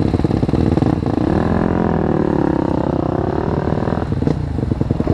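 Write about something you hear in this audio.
A dirt bike engine roars and changes pitch while riding over rough ground.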